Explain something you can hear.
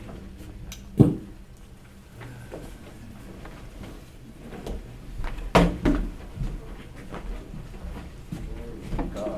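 Equipment thumps and knocks as it is moved about.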